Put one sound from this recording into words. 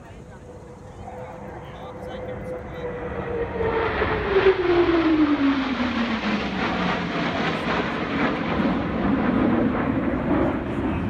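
Jet planes roar overhead, loud and rumbling, with the pitch dropping as they pass.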